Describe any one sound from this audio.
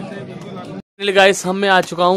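A young man speaks close to the microphone with animation.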